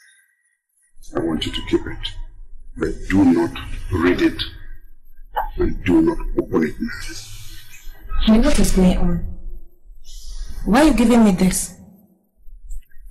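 An older man speaks with feeling, close by.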